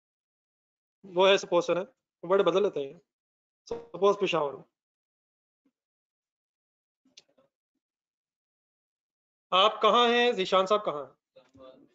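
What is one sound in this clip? A man speaks calmly, explaining, through a microphone.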